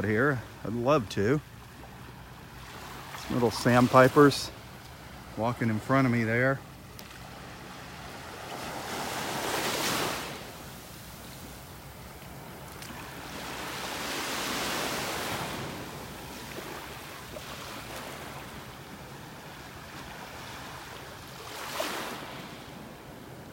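Small waves lap and wash gently onto the shore.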